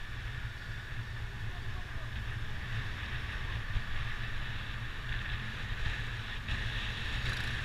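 Wind buffets loudly against a moving motorcycle.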